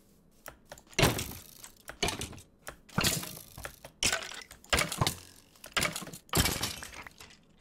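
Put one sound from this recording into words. Sharp hits thump repeatedly in a video game.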